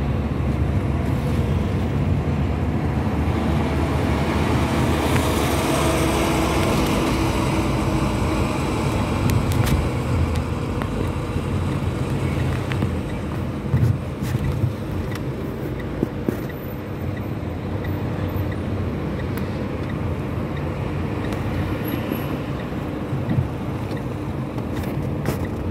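Traffic rumbles along the road.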